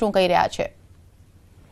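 A woman speaks briefly into a microphone, heard over a broadcast link.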